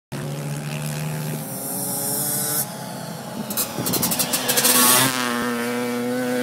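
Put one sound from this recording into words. A four-wheeler engine drones and revs up close.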